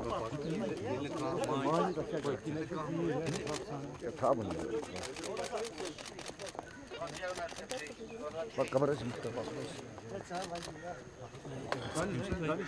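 Several men talk at once in a crowd nearby.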